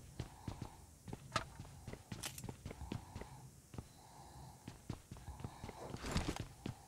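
Footsteps run across a hard floor.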